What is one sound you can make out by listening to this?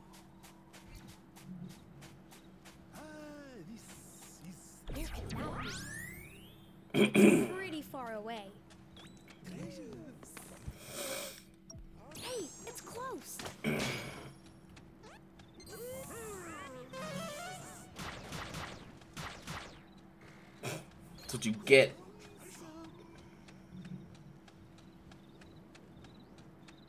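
Playful electronic game sound effects chirp and jingle.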